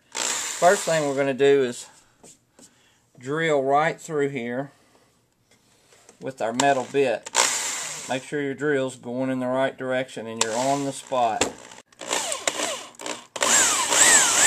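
A power drill whirs in short bursts.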